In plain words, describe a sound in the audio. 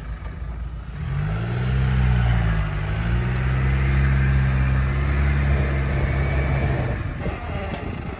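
A vehicle engine revs loudly as it climbs a dirt mound.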